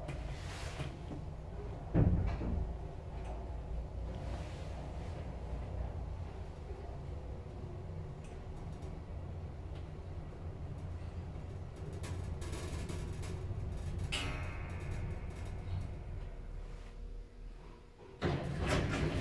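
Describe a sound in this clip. An elevator car hums steadily as it moves.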